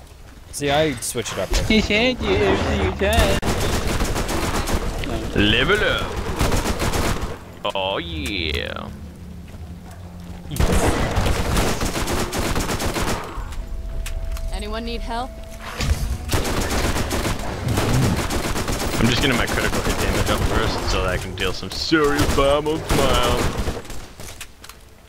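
Rapid gunfire rattles in quick bursts.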